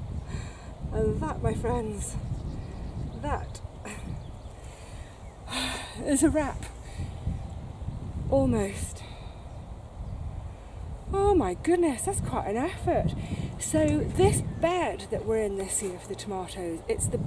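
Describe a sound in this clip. A middle-aged woman talks calmly and close by, outdoors.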